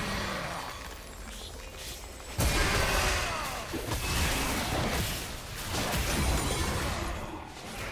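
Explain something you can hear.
Fantasy spell effects whoosh and clash in a fight.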